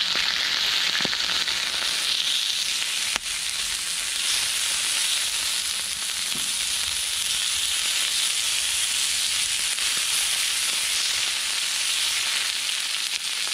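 Chopsticks tap and scrape against a griddle.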